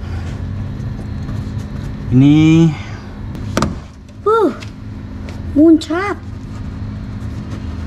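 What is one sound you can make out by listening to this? A gloved hand rubs and presses against a plastic wheel-arch liner.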